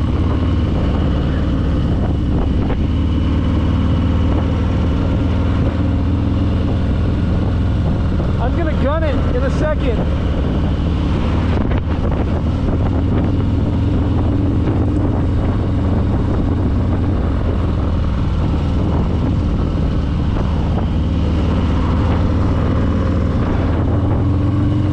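Wind buffets past the rider.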